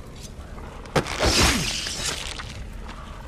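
A blade stabs into flesh with a sharp thud.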